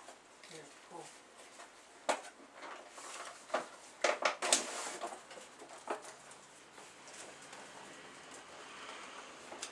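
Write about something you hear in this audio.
Plastic packaging crinkles and clicks as hands handle it.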